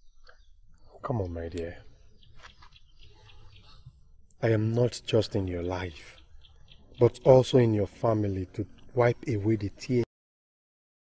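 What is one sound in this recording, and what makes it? A man speaks softly and comfortingly, close by.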